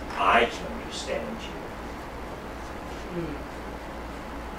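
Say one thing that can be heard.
A man speaks a few short words nearby.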